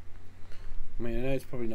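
A young man speaks briefly with animation into a close microphone.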